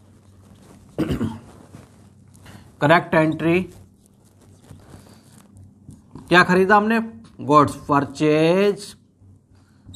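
A man speaks calmly, as if teaching, close by.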